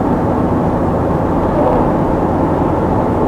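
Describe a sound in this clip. A truck passes by with a brief whoosh.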